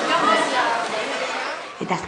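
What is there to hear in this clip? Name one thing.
A crowd murmurs in a large tent.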